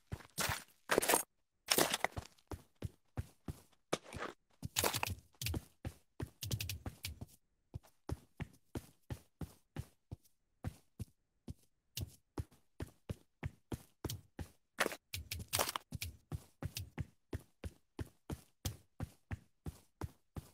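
Footsteps tap quickly and evenly across a hard floor.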